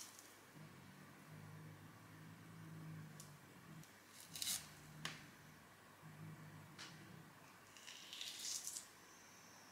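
Fingers peel the skin off a mandarin with soft tearing sounds.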